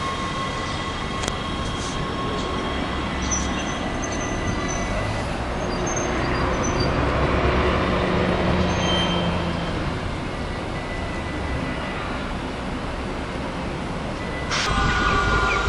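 A train rumbles softly as it approaches from a distance.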